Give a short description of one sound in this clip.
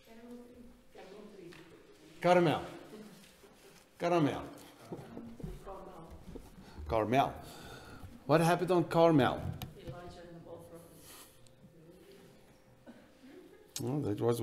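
A middle-aged man speaks with animation, heard up close.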